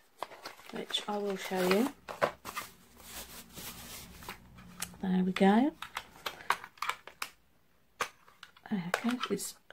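Plastic wrapping crinkles and rustles in hands.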